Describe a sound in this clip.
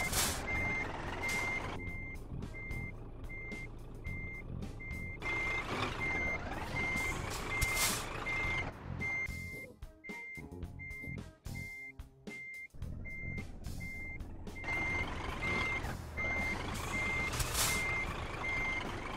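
A diesel truck engine rumbles as the truck reverses slowly.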